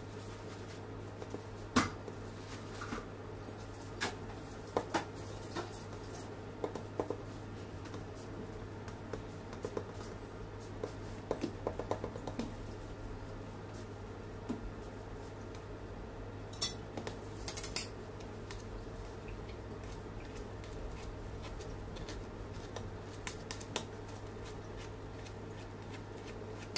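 A knife scrapes and thumps softly against cake.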